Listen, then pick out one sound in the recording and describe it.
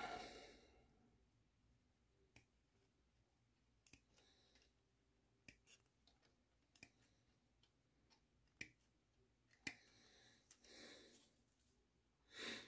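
A plastic parts frame rattles and taps as hands turn it.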